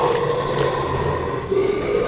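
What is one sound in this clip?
A creature growls and snarls close by.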